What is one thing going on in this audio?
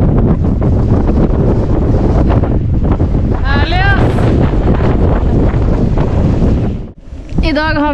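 Strong wind buffets the microphone with a deep roar.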